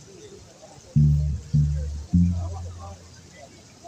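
A bass guitar plays deep notes outdoors.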